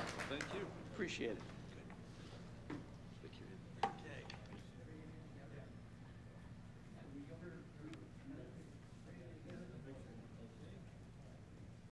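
A crowd murmurs quietly in a large hall.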